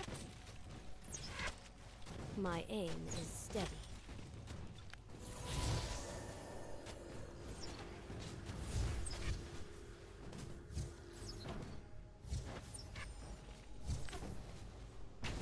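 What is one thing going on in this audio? Spell blasts and impacts burst repeatedly in a game battle.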